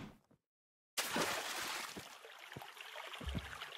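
Liquid splashes as a bucket is emptied.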